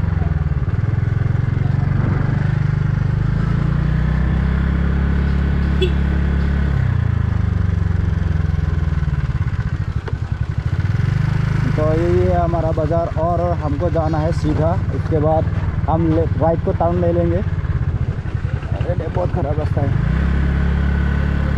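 A motorcycle engine hums steadily, its pitch rising and falling.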